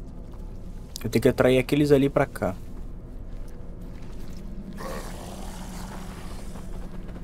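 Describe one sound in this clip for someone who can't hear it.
A young man speaks into a close microphone.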